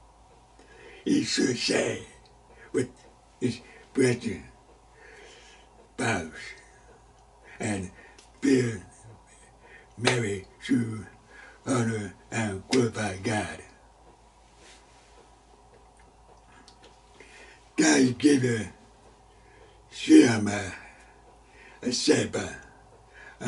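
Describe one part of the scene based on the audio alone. An elderly man speaks calmly and deliberately into a close microphone, with pauses.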